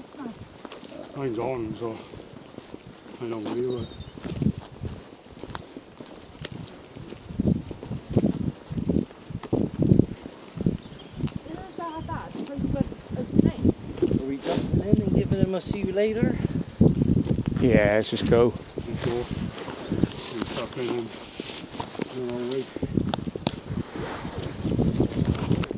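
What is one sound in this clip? Men talk with animation close by, outdoors.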